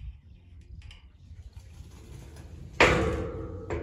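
A metal gate rolls along its track with a low rumble.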